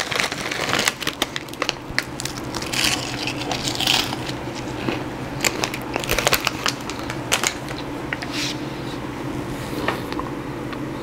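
A man chews noisily close to a microphone.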